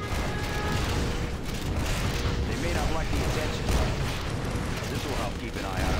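Explosions and energy blasts rumble and crackle in a game battle.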